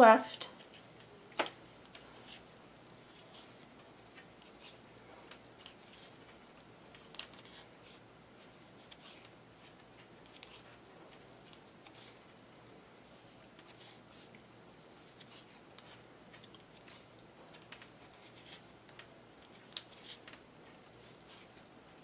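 Knitting needles click and tap softly against each other.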